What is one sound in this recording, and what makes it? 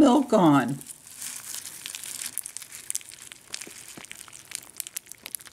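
Milk pours and splashes onto dry cereal in a bowl.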